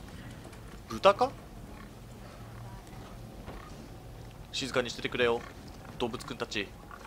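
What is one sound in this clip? A pig grunts and squeals close by.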